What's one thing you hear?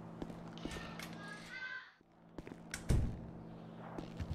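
A door opens and thuds shut.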